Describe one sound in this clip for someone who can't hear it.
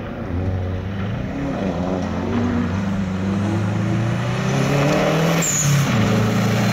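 Tyres crunch and spray over loose gravel.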